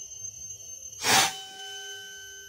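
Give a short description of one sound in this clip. An air rifle fires a single sharp shot.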